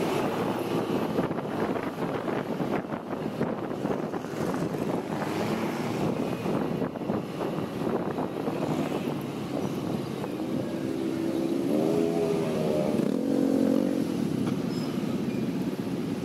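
A motorcycle engine hums steadily while riding slowly.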